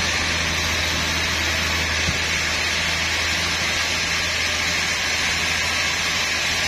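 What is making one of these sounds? A saw motor drones low and steady.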